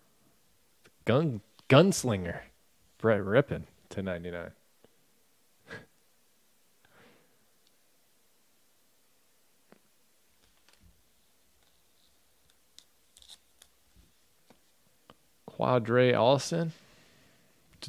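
Trading cards rustle and slide in a hand.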